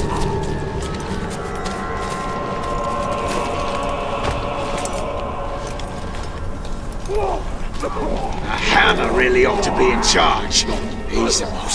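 Footsteps run over rough ground.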